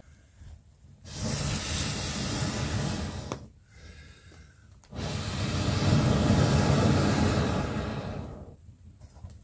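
A wood fire roars and crackles in loud bursts.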